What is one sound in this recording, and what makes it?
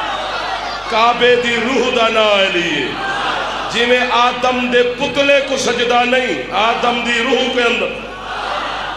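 A man chants loudly through a microphone in a rhythmic call.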